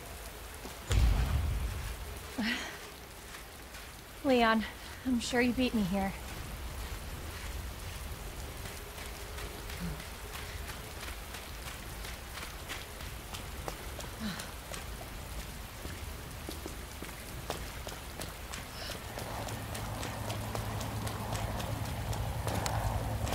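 Footsteps tread on the ground at a steady walking pace.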